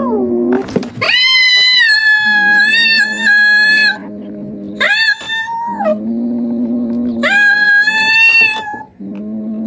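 A cat yowls loudly in long, drawn-out cries.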